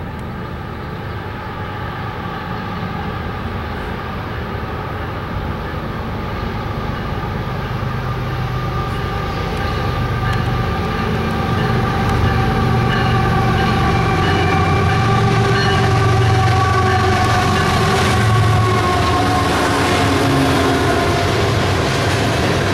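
A diesel locomotive's engine rumbles deeply as it approaches.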